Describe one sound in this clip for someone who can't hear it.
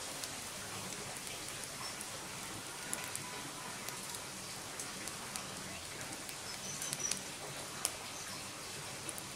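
A wood fire crackles and pops steadily.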